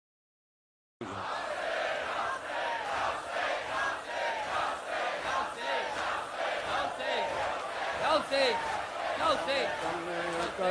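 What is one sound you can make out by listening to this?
An elderly man speaks slowly through a microphone in a large echoing hall.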